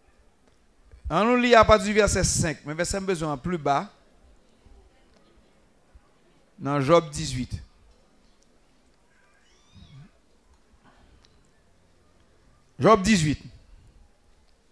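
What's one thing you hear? A man sings into a microphone in short, strong phrases with pauses between them.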